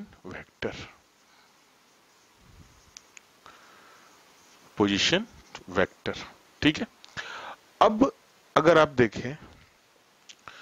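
A man speaks calmly into a nearby microphone, explaining.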